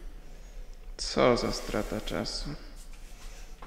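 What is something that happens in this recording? A young man speaks briefly and calmly, close by.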